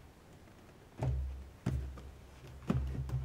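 Hands grip and set down a cardboard box with soft thuds.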